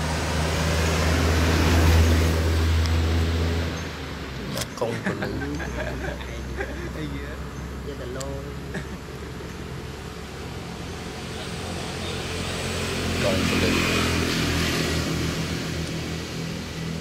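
A monkey chews and smacks wetly on soft fruit.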